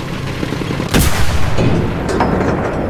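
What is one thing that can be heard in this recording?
A shell explodes nearby with a loud boom.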